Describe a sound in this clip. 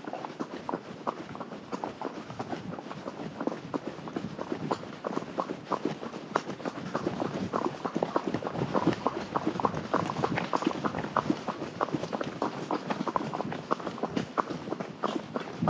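A horse's hooves crunch steadily on a gravel track.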